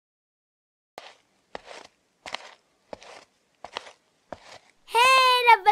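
Footsteps climb hard stairs at a steady pace.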